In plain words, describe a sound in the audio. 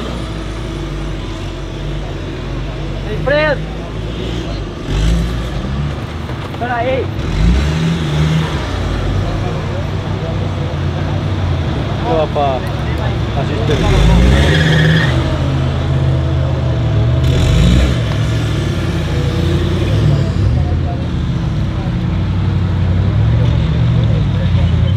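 An off-road engine roars and revs hard.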